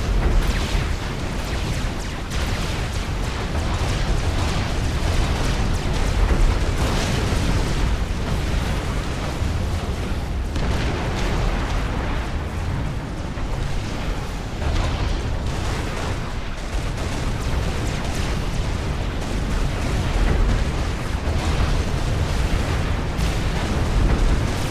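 Explosions rumble and crack throughout.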